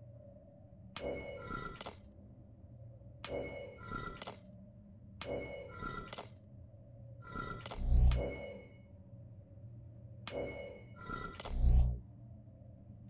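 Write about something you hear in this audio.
Bright chimes ring with soft clicks as pieces slide into place.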